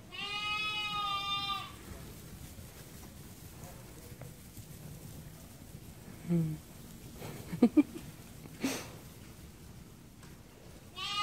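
Sheep and lambs bleat nearby.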